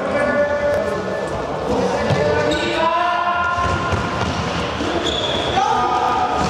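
Young players shout to each other in a large echoing hall.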